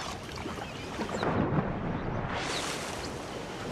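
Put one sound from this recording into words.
A body plunges into water with a splash.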